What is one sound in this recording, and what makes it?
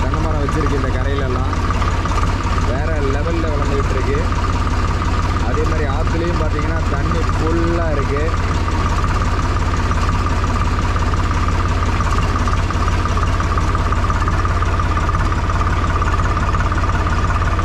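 A tractor engine chugs steadily up close.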